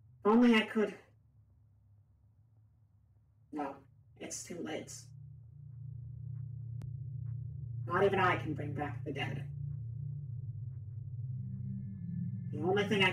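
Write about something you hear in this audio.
A young woman speaks close to a microphone in short bursts.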